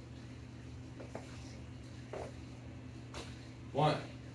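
Sneakers thud softly on a hard floor.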